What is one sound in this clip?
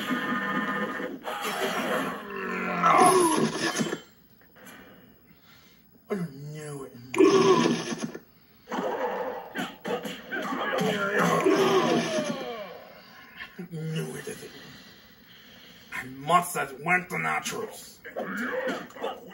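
Game fighting sounds thump and clash in quick bursts, heard through a television speaker.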